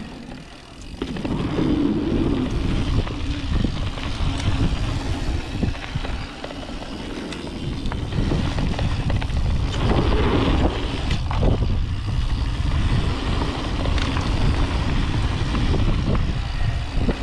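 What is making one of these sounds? Bicycle tyres crunch and rattle over a dirt trail.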